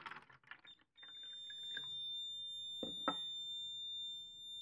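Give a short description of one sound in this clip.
An electronic buzzer sounds a steady, high-pitched beep.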